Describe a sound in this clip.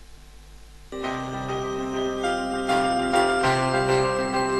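Music plays loudly over loudspeakers.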